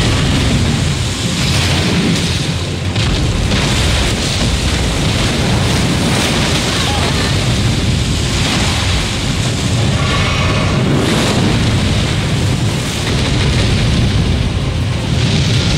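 Water splashes heavily under stomping feet.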